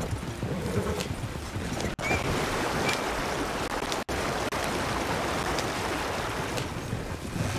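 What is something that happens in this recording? Water splashes as a wagon fords a stream.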